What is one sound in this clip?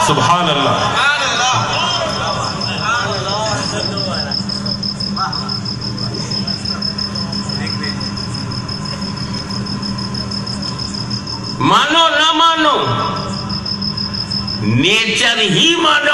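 A man chants loudly through loudspeakers, echoing outdoors.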